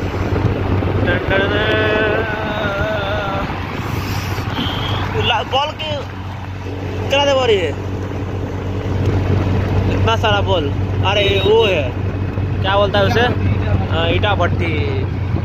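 A small three-wheeler engine rattles and hums steadily while driving.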